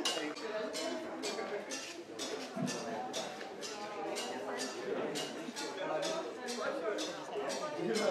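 Young women chat quietly nearby.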